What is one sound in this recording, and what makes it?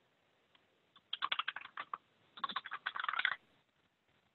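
A young man speaks quietly over an online call.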